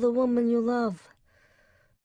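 A man yells out in a long, steady cry.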